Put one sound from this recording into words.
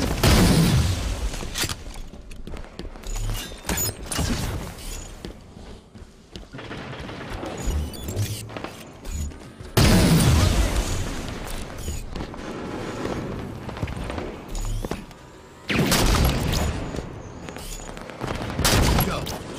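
Sniper rifle shots boom, each followed by a rumbling echo.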